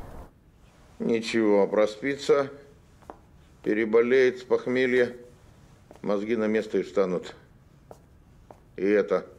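An older man speaks with animation, close by.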